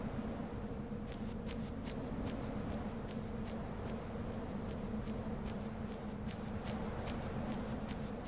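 Light footsteps patter quickly on a dirt path.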